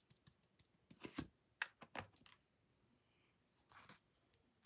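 A stamp block knocks down on paper.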